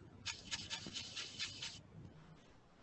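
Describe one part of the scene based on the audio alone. A brush scrubs against paper.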